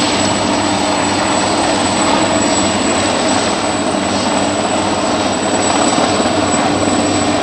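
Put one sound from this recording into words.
A helicopter hovers close by with a loud, steady thudding roar of rotors and engine.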